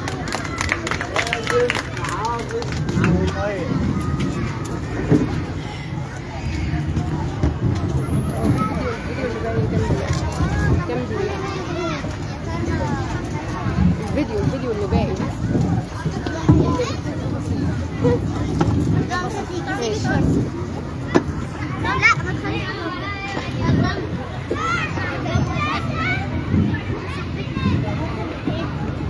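A crowd of children chatters and shouts loudly outdoors.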